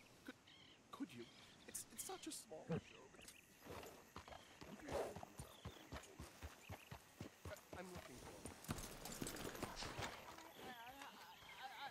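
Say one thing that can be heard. Horse hooves clop steadily on a dirt track.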